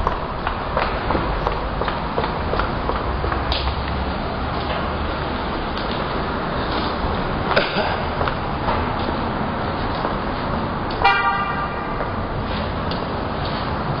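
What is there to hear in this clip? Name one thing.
Steady street noise hums outdoors.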